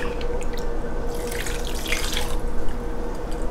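Water pours into a bowl.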